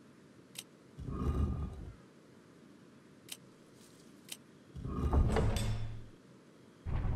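A heavy stone dial grinds as it turns.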